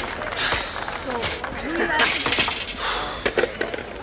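A bicycle clatters to the ground.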